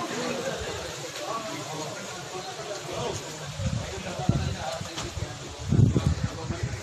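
A group of men talk nearby outdoors.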